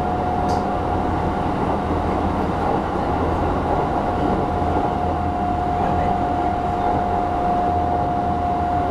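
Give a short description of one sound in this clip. A train's motor hums with a steady high whine.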